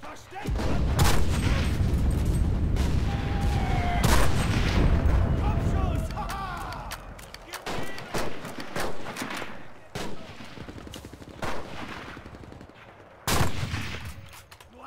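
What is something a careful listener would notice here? A rifle fires loud, sharp shots that echo away.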